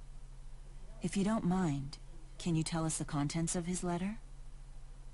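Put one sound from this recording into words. A young woman asks a question calmly.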